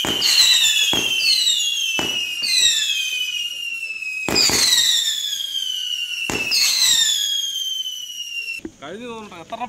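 Firework rockets whistle shrilly, their pitch sliding down.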